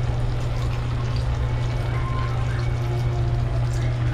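A thick liquid pours into a pot.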